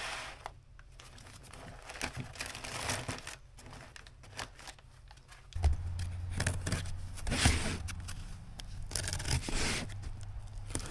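A cardboard box scrapes and rustles as it is handled close by.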